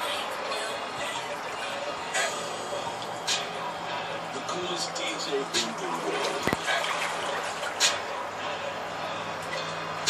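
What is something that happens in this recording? Hands splash and slosh through water.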